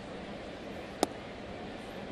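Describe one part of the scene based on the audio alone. A baseball pops sharply into a catcher's mitt.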